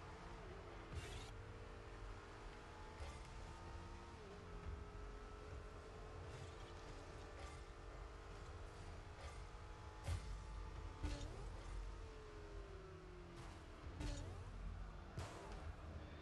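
A ball is struck with loud thuds.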